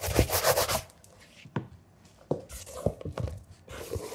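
A shoe knocks down onto a hard counter.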